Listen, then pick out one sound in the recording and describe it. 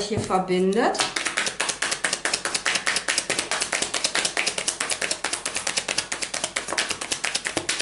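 Playing cards riffle and flick rapidly as they are shuffled.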